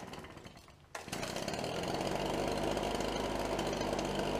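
A leaf blower engine starts and roars steadily.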